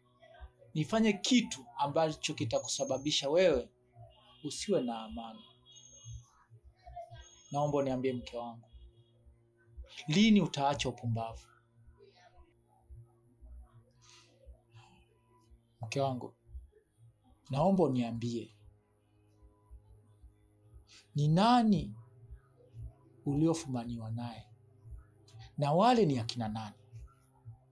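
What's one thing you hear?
A young man speaks emotionally and haltingly, close by.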